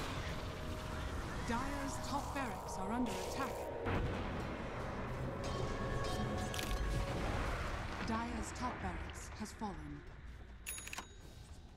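Video game combat effects clash and crackle with magical whooshes.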